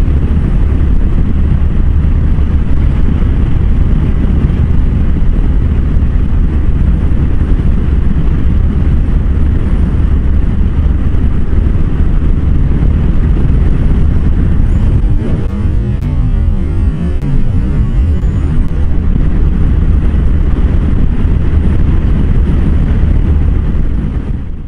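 A motorcycle engine hums steadily underneath.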